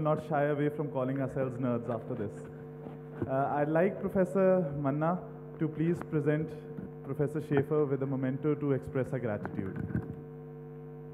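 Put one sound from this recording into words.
A young man speaks calmly through a microphone in an echoing hall.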